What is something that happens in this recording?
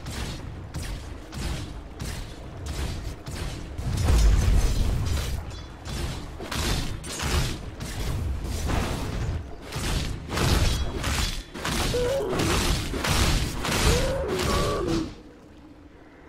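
Game spell effects and weapon hits crack and whoosh in rapid bursts.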